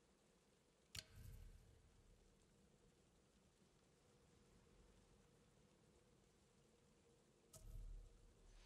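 A soft menu click sounds.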